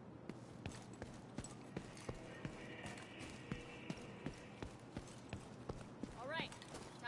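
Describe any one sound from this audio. Footsteps thud quickly on pavement.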